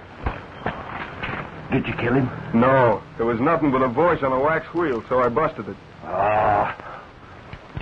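A man speaks angrily and close by.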